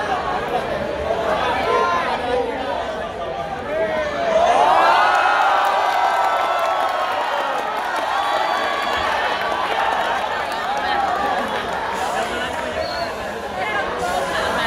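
A string orchestra plays a lively tune through loudspeakers in a large echoing hall.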